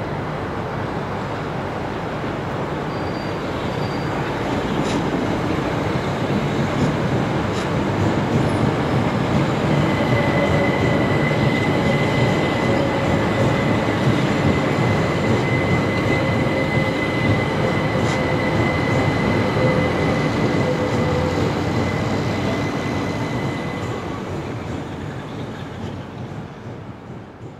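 A diesel passenger train pulls away along the track and fades into the distance.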